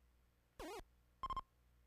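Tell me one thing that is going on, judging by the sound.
A retro video game plays a quick warbling chirp as a character moves.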